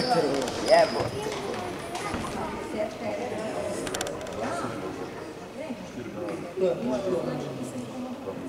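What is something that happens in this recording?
A crowd of young people chatters and calls out in a large echoing hall.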